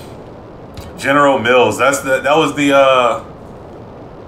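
A man talks with animation close to a headset microphone.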